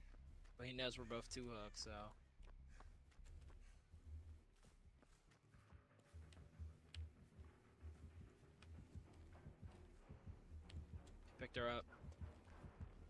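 Heavy footsteps thud steadily through grass.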